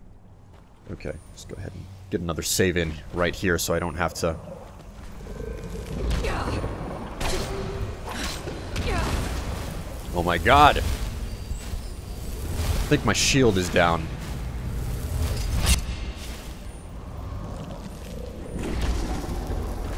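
Magic spells crackle and whoosh in a fight.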